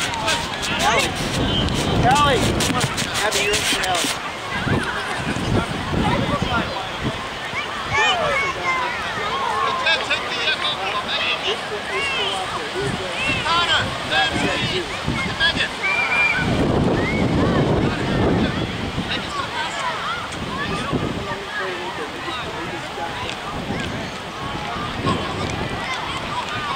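A soccer ball thumps as a child kicks it.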